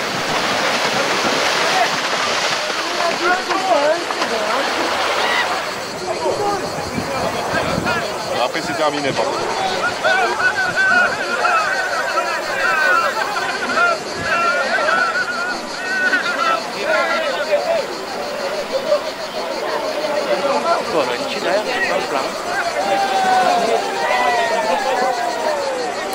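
A crowd of onlookers shouts and cheers outdoors.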